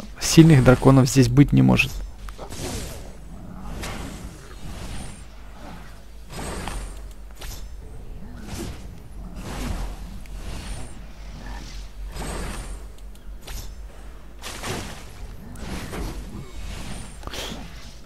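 Magical blasts whoosh and crackle in quick bursts.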